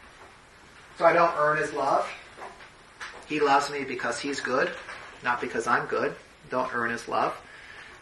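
A man speaks calmly and clearly.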